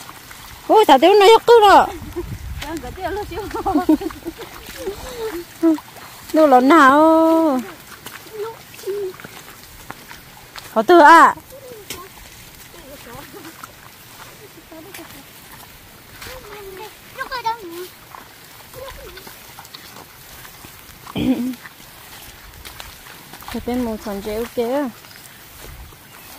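Footsteps splash through wet, muddy grass.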